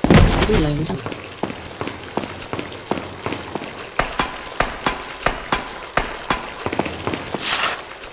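Footsteps thud steadily on stone.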